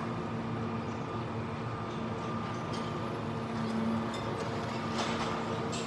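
A heavy machine engine hums steadily.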